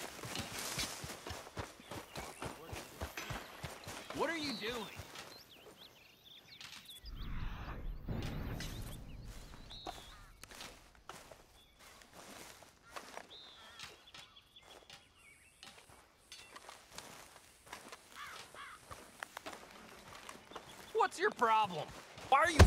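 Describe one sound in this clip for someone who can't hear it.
Footsteps crunch through grass and dirt.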